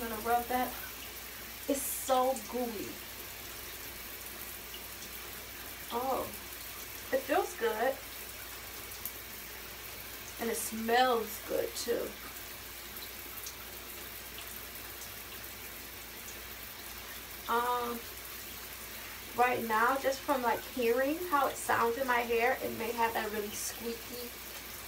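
A young woman talks casually to a nearby microphone.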